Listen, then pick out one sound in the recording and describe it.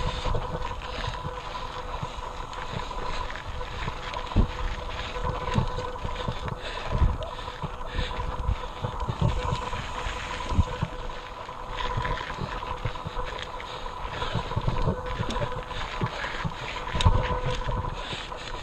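A bicycle's frame and parts clatter over bumps.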